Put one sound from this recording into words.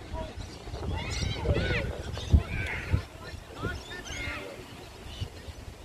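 Children shout in the distance on an open field.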